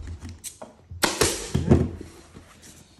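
A staple gun snaps several times in quick succession.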